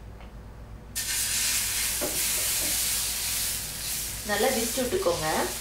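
Batter sizzles loudly on a hot griddle.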